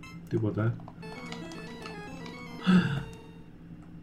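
Electronic video game beeps and chirps play.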